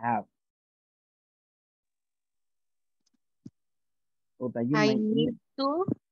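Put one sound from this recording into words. A woman speaks over an online call, with short pauses.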